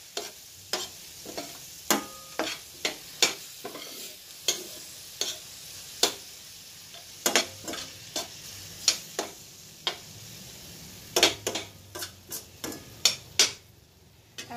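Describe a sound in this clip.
A metal utensil clinks and scrapes against a pan.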